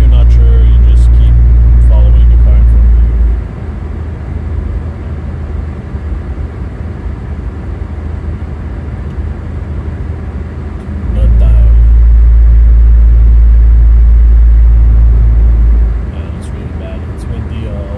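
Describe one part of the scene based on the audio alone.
A car drives with a low, steady road rumble that swells louder at times.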